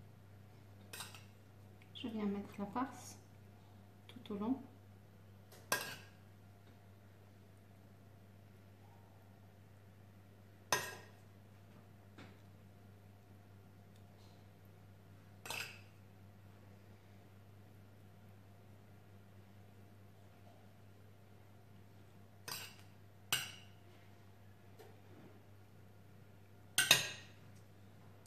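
A metal spoon taps and scrapes on a hard surface.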